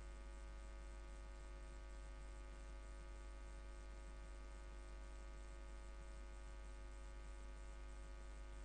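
A pipe organ plays a steady held chord that echoes in a large hall.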